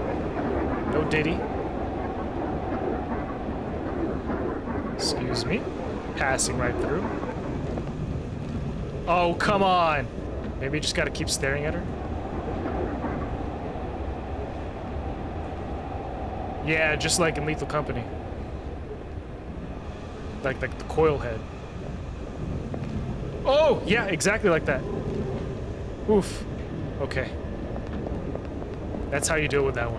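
A subway train rumbles and hums steadily.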